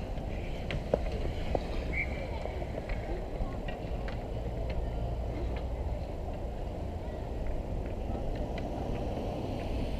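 Hockey skates scrape and carve on ice.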